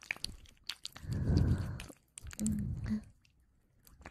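A young woman blows softly into a microphone up close.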